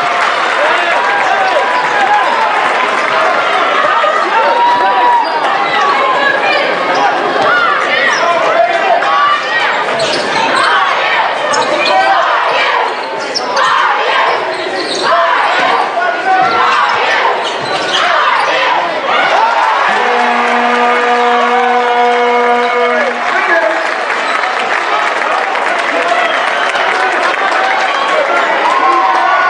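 A large crowd chatters and cheers in an echoing hall.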